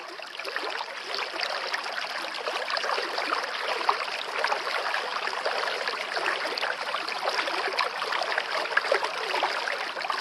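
Waves break and wash onto a sandy shore.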